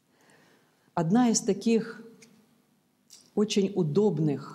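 A middle-aged woman speaks calmly into a close microphone.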